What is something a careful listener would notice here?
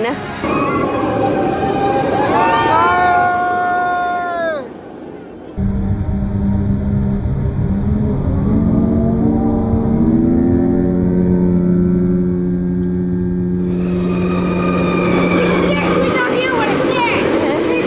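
A roller coaster rumbles and whooshes along its track.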